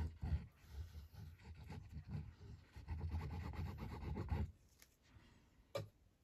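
A plastic glue bottle clicks and knocks as hands handle it.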